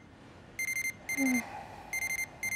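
A young woman groans sleepily, close by.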